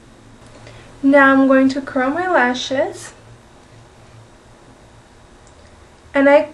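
A young woman speaks close to the microphone.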